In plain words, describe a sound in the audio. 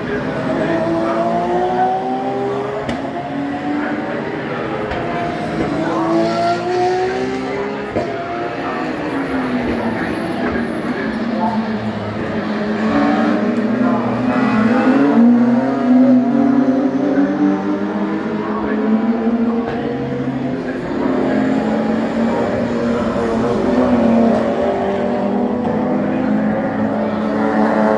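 Racing car engines roar past, rising and falling in pitch as they speed by and shift gears.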